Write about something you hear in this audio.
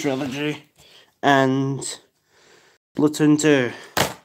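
A plastic game case rattles in a hand.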